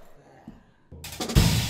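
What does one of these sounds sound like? Drums and cymbals are played hard.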